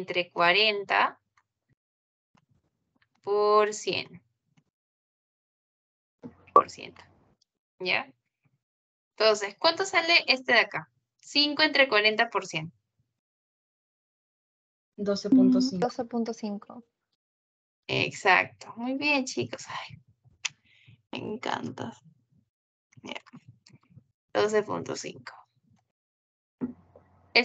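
A young woman talks calmly through an online call, in bursts with pauses.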